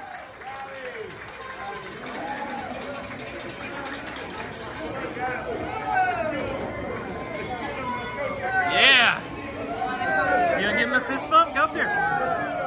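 Hands slap in high fives.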